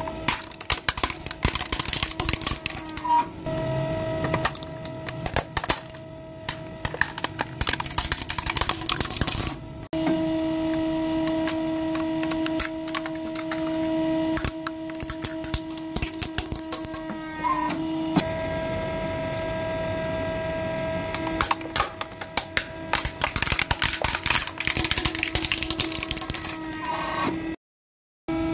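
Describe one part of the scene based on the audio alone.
Plastic toys crack and crunch as a hydraulic press crushes them.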